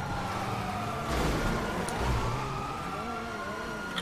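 Car tyres screech on pavement in a drift.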